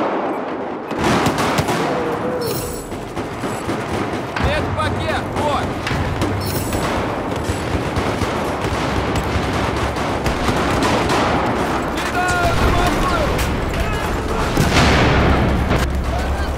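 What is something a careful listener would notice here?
Automatic rifle fire rattles.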